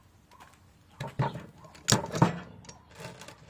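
Metal pieces clank down with sharp knocks.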